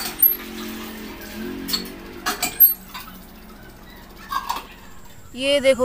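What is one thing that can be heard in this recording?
Water splashes from a hand pump onto the ground.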